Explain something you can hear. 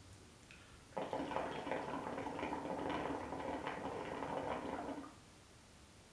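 Water bubbles and gurgles loudly in a hookah.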